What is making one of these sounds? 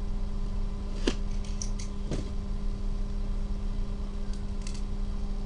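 A gloved hand taps and slides across a cardboard box.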